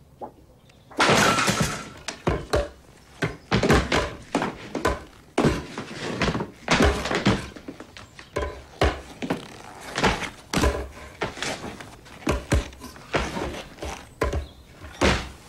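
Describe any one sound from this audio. Wooden broom handles clatter and knock on a hard floor.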